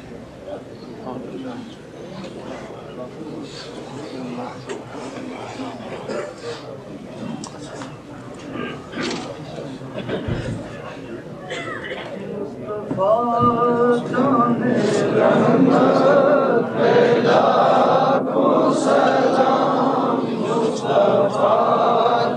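A dense crowd of men murmurs and talks close by.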